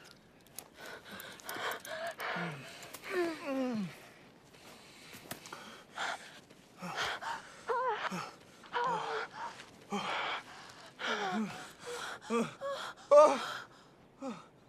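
Lips smack softly in kisses.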